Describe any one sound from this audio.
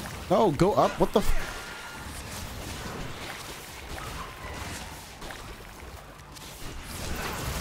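Game sound effects clash and zap.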